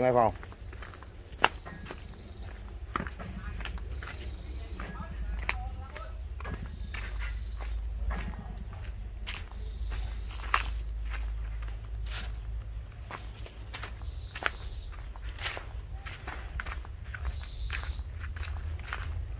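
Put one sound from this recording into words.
Footsteps crunch on dry leaves and dirt.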